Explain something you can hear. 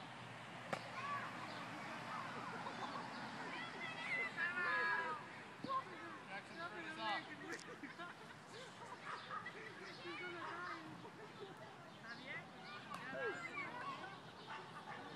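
A young boy calls out from a distance outdoors.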